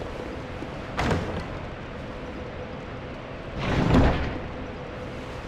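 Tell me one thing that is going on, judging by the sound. A heavy chest lid creaks open with a thud.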